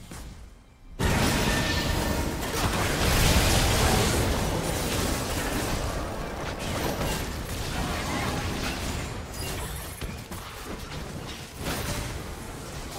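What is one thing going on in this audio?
Video game combat sound effects crash and burst.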